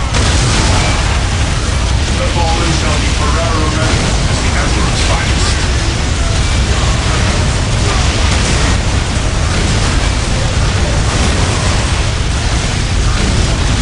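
Guns fire rapidly in a dense, noisy battle.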